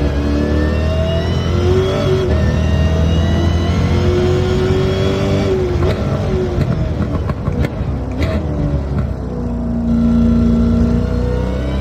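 A car engine roars, its pitch climbing and dropping as the gears shift.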